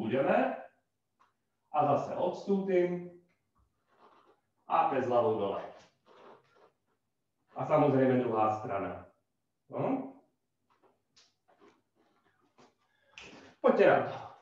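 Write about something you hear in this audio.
A man speaks calmly through a close microphone, giving instructions in short phrases.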